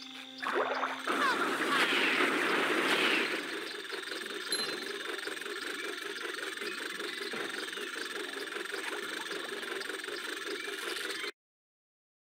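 Cheerful game music plays steadily.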